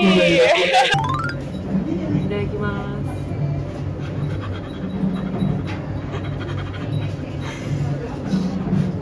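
A young woman speaks cheerfully close by.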